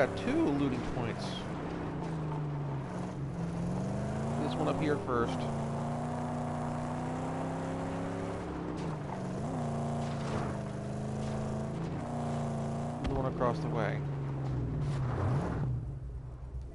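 Tyres skid and crunch over rough ground.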